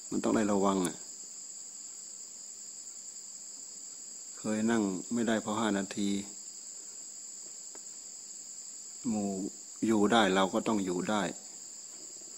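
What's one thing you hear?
An elderly man speaks calmly in short phrases.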